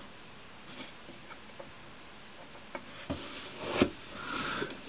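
A small plastic toy taps against a wooden tabletop.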